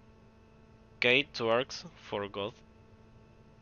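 A young man speaks briefly and animatedly into a microphone, close by.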